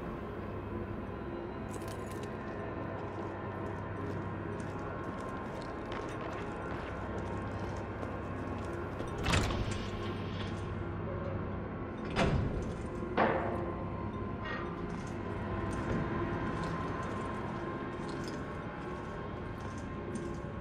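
Footsteps thud on hard stairs and floor.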